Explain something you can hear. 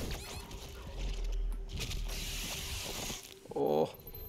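Flesh tears and squelches.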